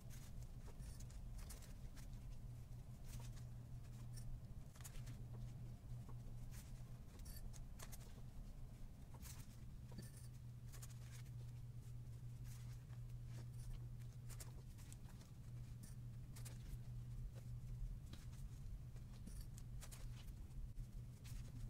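Paper rustles and crinkles as small pieces are pressed onto a foam ball.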